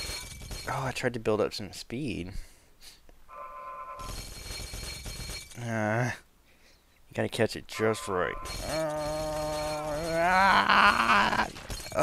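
Glass bottles clatter and smash in a crash.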